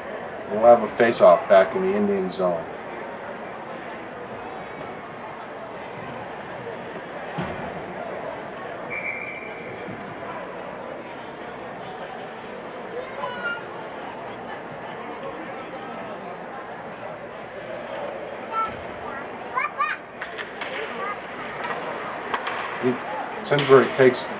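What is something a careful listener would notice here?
Skates scrape and glide across ice in a large echoing rink.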